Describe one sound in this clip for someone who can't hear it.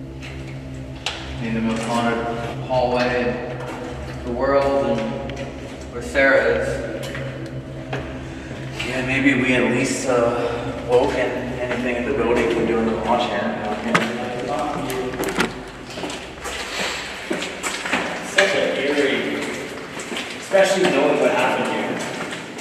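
Young men talk in low voices, close by.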